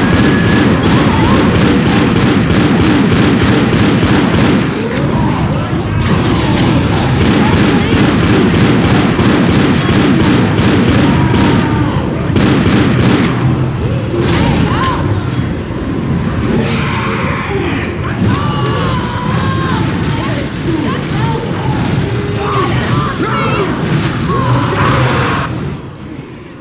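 A large monster roars and growls.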